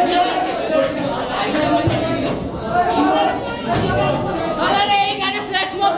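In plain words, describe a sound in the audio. Young men talk and shout loudly over one another nearby in an echoing room.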